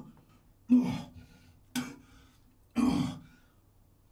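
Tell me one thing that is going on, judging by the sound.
A man retches loudly over a toilet, again and again.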